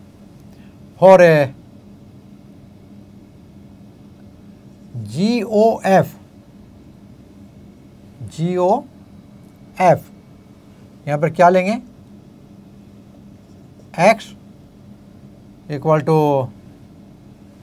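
An elderly man speaks calmly in short phrases, close to a microphone, with pauses between them.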